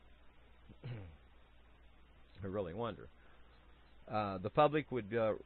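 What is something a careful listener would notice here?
A man speaks calmly through a microphone, in short phrases.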